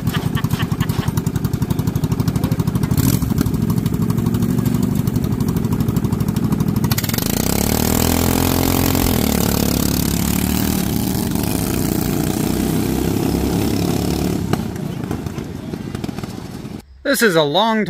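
A small lawn mower engine chugs loudly up close, then roars and fades as the mower drives away.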